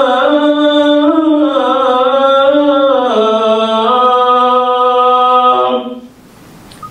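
An elderly man chants in a long, drawn-out voice through a microphone.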